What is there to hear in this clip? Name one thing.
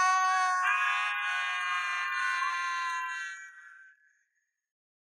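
A teenage boy screams loudly close by.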